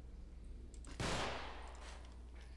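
A pistol fires a single shot.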